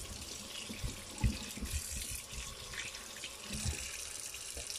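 Potatoes knock and bump against a metal sink.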